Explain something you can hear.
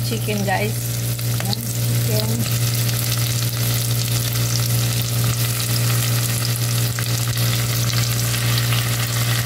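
Raw meat plops softly into a pot.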